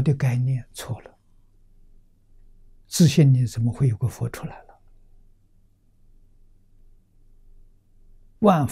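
An elderly man speaks calmly and slowly into a nearby microphone, with long pauses.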